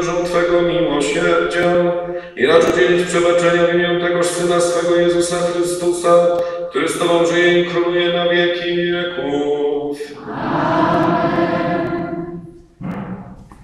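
A congregation sings in an echoing church.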